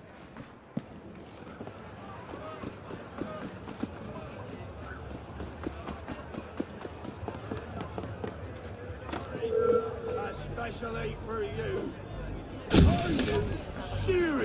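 Footsteps patter quickly over hard ground.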